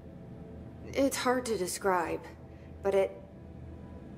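A woman answers in a calm, low voice.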